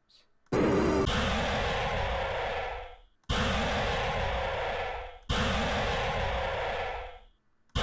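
A harsh, loud screech blares in three long bursts.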